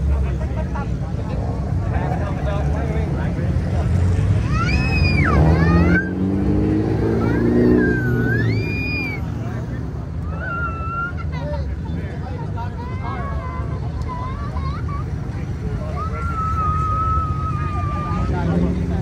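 Car engines rumble and roar as cars drive past close by.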